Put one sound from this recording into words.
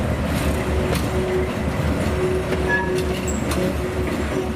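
Steel wheels click over rail joints.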